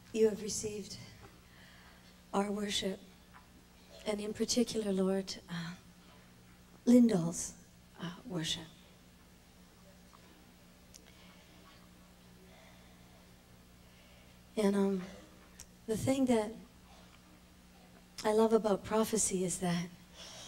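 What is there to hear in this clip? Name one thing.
A woman speaks slowly and emotionally into a microphone, with long pauses.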